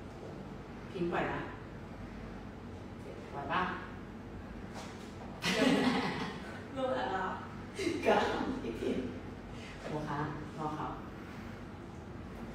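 A second young woman talks with animation and laughs.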